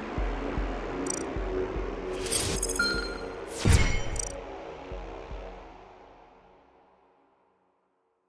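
Upbeat game music plays, then slowly fades away.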